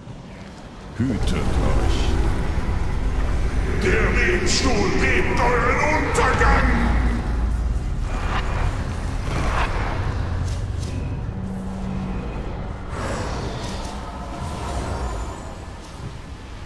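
Magic blasts and impacts crash and whoosh in a busy fantasy battle.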